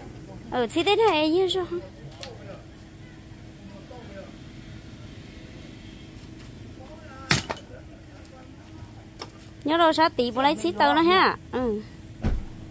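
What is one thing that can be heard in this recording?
Pieces of firewood knock and clatter as they are stacked.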